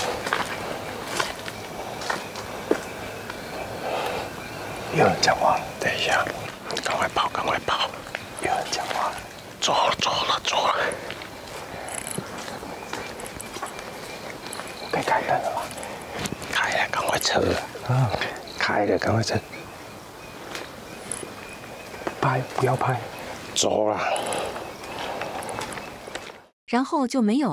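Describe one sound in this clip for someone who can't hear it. A young man speaks in a tense, hushed voice close by.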